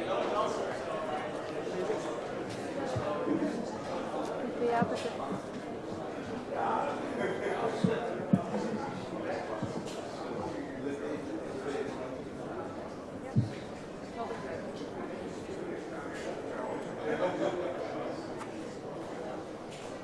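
Men and women chat outdoors, their voices overlapping.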